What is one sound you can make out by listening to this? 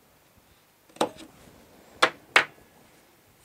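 A hand tool snaps sharply through stiff paper a few times.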